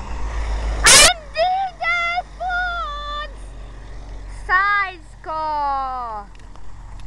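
A truck's siren or horn sounds in short wailing blasts nearby.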